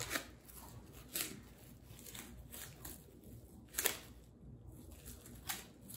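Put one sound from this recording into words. A knife slices through crinkling plastic wrap.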